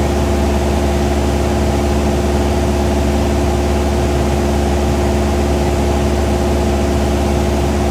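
A small plane's propeller engine drones loudly and steadily from inside the cabin.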